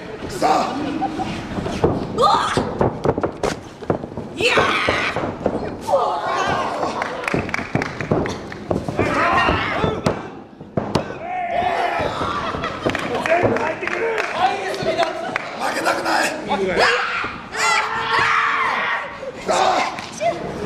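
Young women shout and yell with effort.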